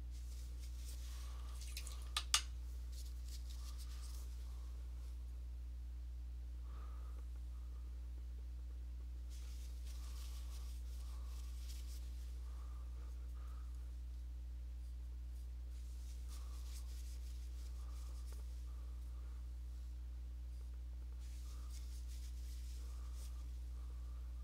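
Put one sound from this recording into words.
A paintbrush scrapes and dabs thick paint on canvas.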